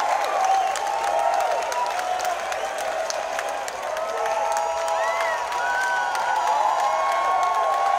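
A large crowd cheers and shouts loudly in a big echoing hall.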